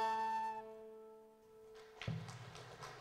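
A boy plays a held note on a tin whistle.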